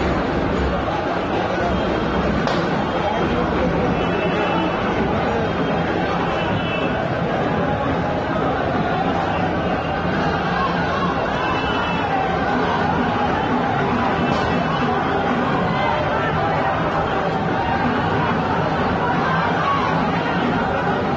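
A large crowd of men clamours and shouts outdoors.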